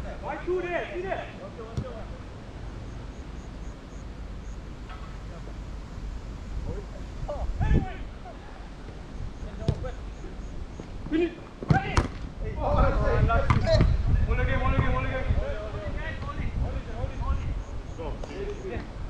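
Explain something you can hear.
Men shout to each other across an open pitch.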